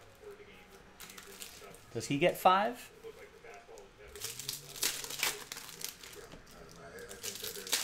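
Card wrappers rustle and crinkle as packs are handled.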